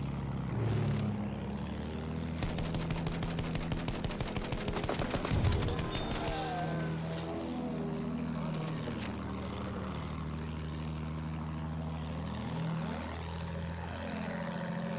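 A propeller plane's engine drones steadily, its pitch rising and falling.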